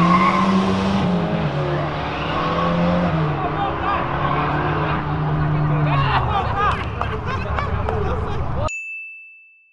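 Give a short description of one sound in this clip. Car engines roar and rev.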